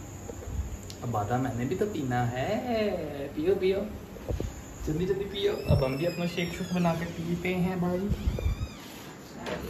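A young man talks animatedly close by.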